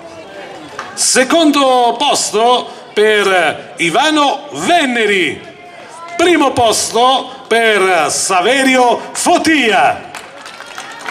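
A man speaks with animation through a loudspeaker outdoors, with echo.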